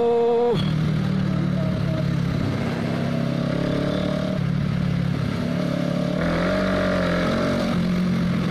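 A motorcycle engine hums steadily up close, changing pitch as it shifts and revs.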